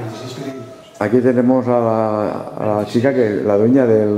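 An elderly man talks calmly nearby.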